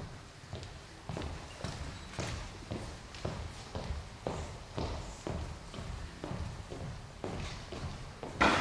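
Footsteps march in an even rhythm on a hard floor, in a large echoing hall.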